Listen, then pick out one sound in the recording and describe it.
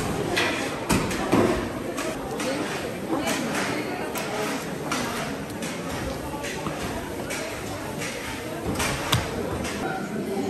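A busy market crowd murmurs in the background.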